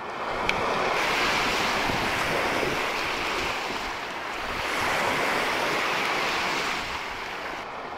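Small waves wash and break onto a pebbly shore.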